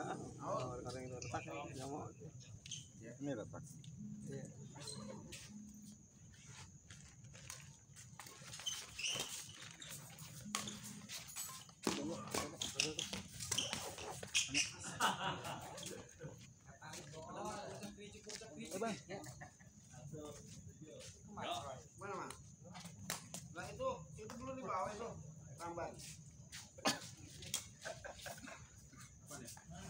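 Shuttlecocks pop off badminton rackets in sharp hits.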